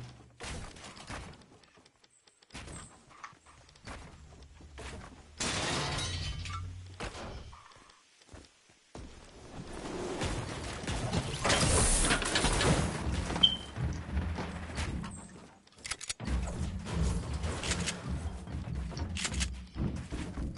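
Building pieces snap into place with quick, repeated clacks.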